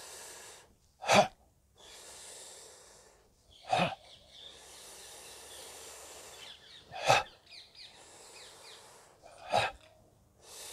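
A man lets out short, sharp bursts of breath.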